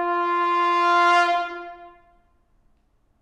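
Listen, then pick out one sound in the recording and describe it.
A trombone holds a long, loud note that fades away in an echoing hall.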